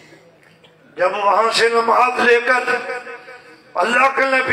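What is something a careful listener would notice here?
A man chants loudly through a microphone.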